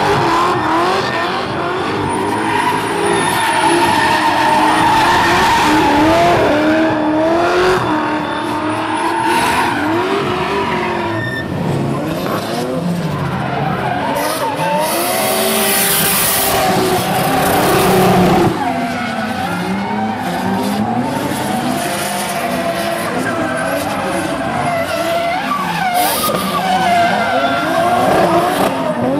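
Drift car tyres squeal and spin on asphalt.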